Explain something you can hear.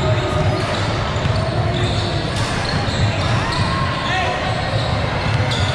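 Voices of young players and onlookers chatter, echoing in a large hall.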